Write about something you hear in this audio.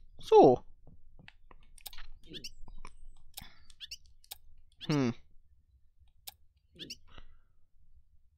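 Short electronic chirps sound now and then.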